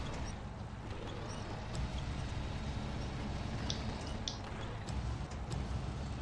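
A crane arm whirs as it lowers a load.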